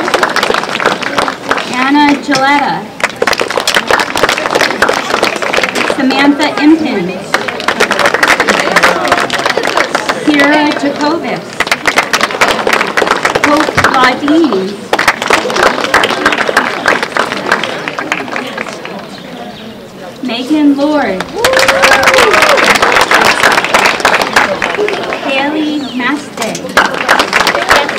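A crowd claps and cheers steadily.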